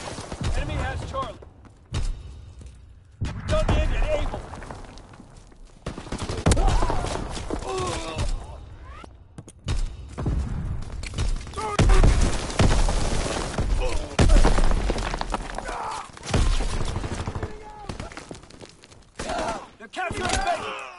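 Gunfire rings out in sharp bursts.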